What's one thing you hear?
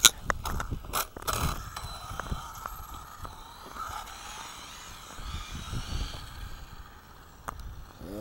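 A small electric motor whines as a toy car speeds off.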